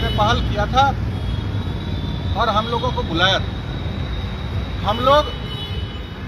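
A middle-aged man speaks to a microphone close up, in short bursts.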